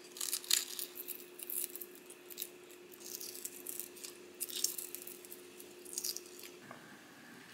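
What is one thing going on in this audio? Eggshell cracks and crinkles as fingers peel it.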